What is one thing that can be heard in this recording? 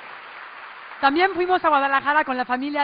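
A young woman speaks with animation into a microphone, close by.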